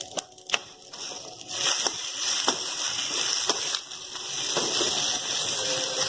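A spatula stirs frying food in a pan.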